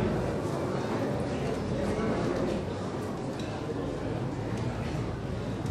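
A crowd of people murmurs prayers together in an echoing hall.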